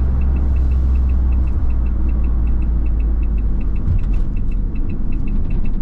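A van engine hums steadily from inside the cab while driving.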